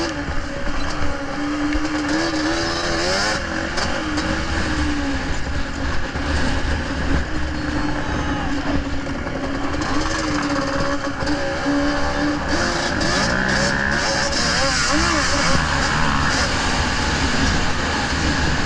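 An engine roars loudly and revs up and down throughout.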